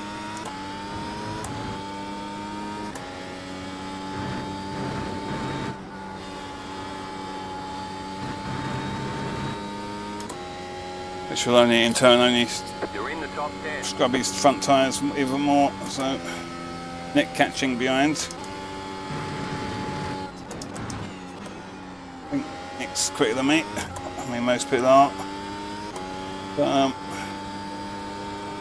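A racing car engine drones steadily, its pitch stepping up and down as it shifts gears.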